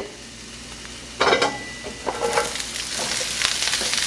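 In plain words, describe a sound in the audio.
Cabbage tumbles into a hot pan.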